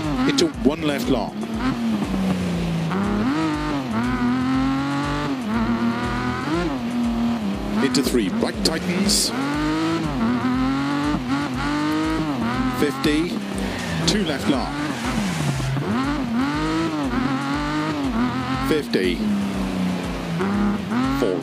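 A sports car engine revs high and drops again and again as gears change.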